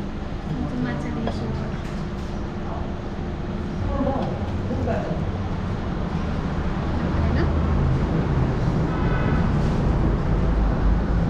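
A young woman talks and laughs, close by.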